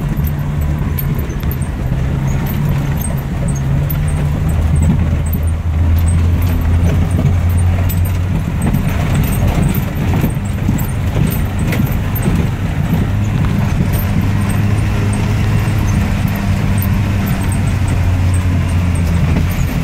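Tyres crunch and rumble over a bumpy dirt track.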